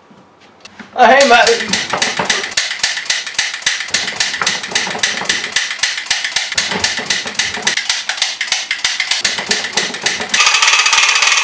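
A toy gun fires in rapid bursts of loud shots.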